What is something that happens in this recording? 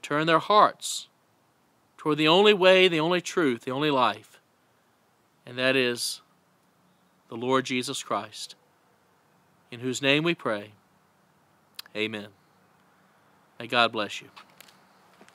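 A middle-aged man speaks calmly and close to the microphone, with pauses.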